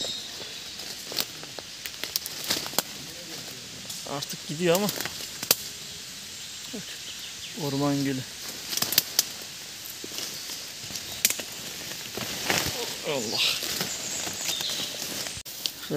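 Footsteps crunch and rustle through dry leaves on the ground.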